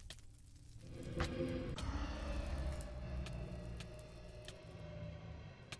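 An explosion booms with a rumbling roar.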